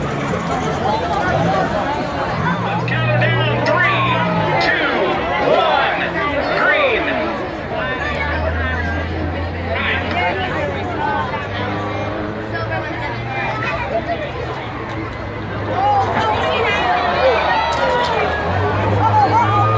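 A crowd chatters and cheers loudly outdoors.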